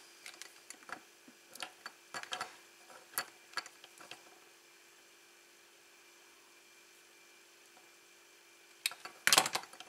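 Small wires rustle and click between fingers.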